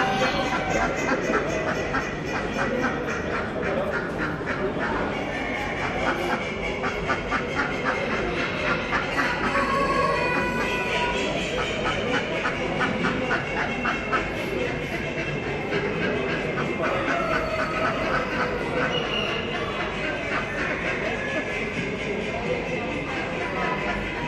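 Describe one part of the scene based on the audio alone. Many other chickens cluck and crow all around.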